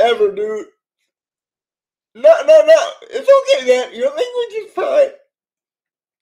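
A man talks cheerfully through a microphone, heard as if on an online call.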